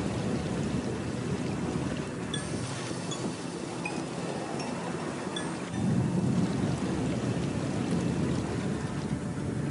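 Footsteps clank on a metal grate.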